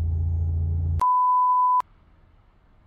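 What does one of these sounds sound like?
A steady high test tone beeps briefly.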